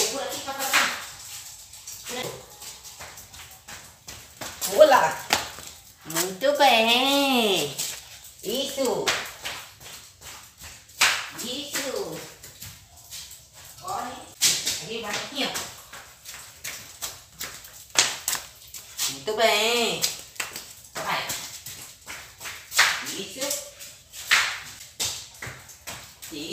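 Sandals slap on a concrete floor as a boy runs.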